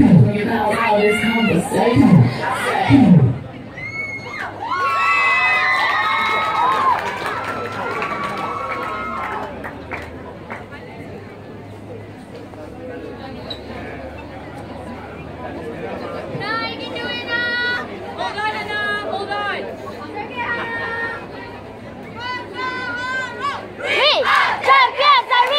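A group of young people shout and chant together in the distance, outdoors in the open.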